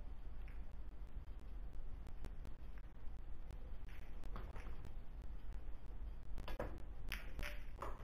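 Pool balls knock together with sharp clacks.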